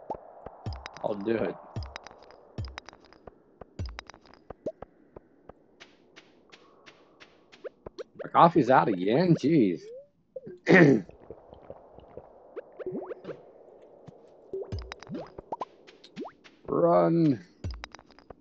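A middle-aged man talks casually into a microphone in short bursts.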